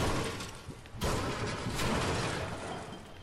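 A pickaxe swings and strikes with sharp thuds.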